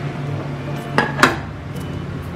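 A metal cake tin knocks against a plate as it is lifted off.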